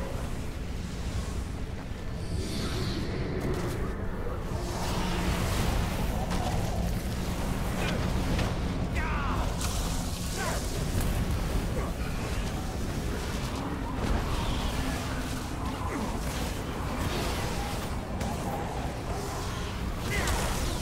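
Magic blasts and hits clash in a busy fight.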